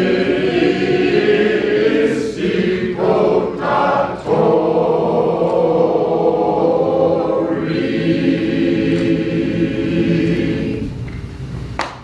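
A choir of men and women sings together in a large echoing hall.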